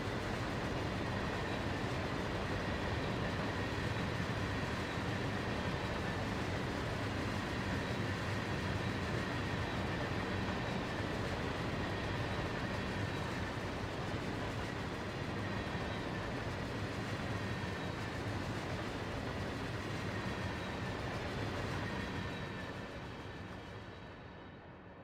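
Steel wheels squeal on the rails.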